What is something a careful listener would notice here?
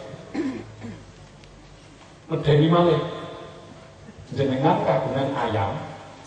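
A middle-aged man preaches forcefully into a microphone over a loudspeaker, in an echoing hall.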